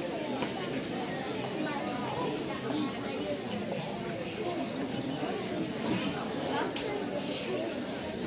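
A boy speaks into a microphone over a loudspeaker in an echoing hall.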